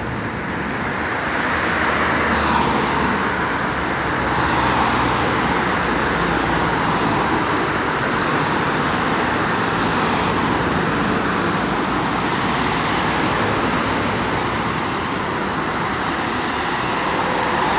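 A bus engine hums as the bus pulls away.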